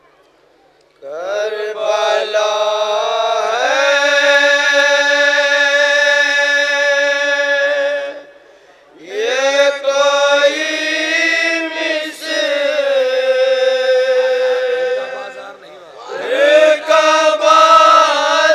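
A young man sings loudly and with feeling through a microphone, in long held notes.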